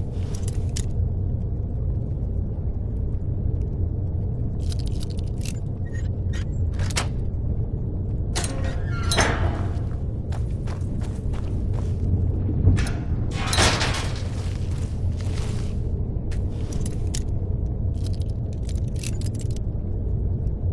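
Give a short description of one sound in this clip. A lock pick scrapes and clicks inside a metal lock.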